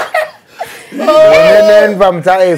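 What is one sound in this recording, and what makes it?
A man laughs loudly and long.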